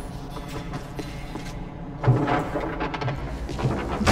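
A heavy door swings open with a thud.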